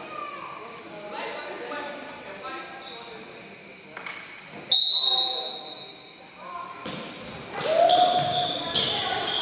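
Spectators chatter and call out in the stands.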